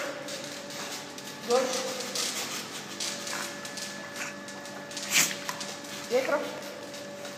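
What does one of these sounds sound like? Water splashes and sloshes in an echoing pool.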